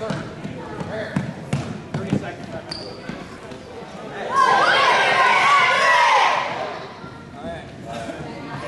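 Sneakers squeak on the gym floor.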